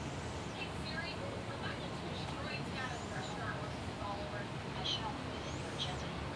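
A llama grunts softly nearby.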